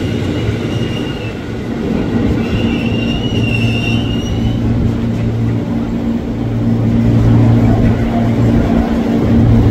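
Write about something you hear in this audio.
An approaching train rumbles closer.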